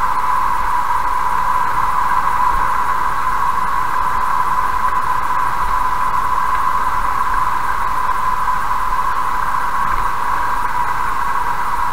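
Tyres roar steadily on a highway as a car drives along.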